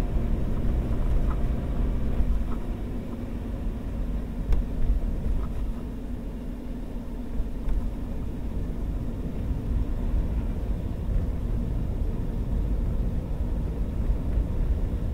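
A car engine hums steadily from inside the car.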